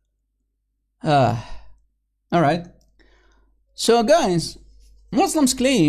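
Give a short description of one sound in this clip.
A middle-aged man speaks with emphasis into a microphone, in short bursts.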